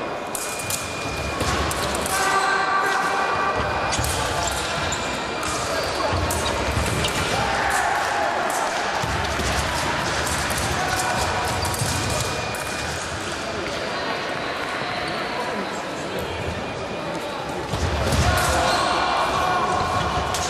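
Blades clash and scrape as two fencers duel.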